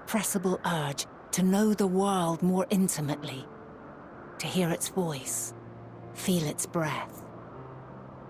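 A woman speaks with emotion.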